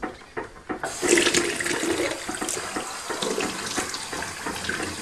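Water runs from a tap into a basin.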